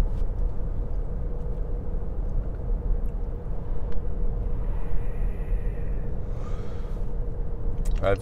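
A car engine and tyres rumble steadily from inside a moving car.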